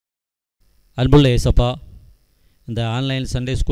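A man speaks slowly and calmly into a microphone.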